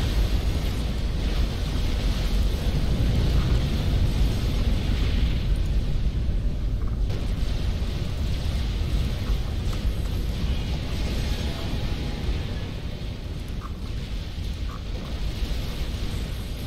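Battle explosions and gunfire rumble steadily in the distance.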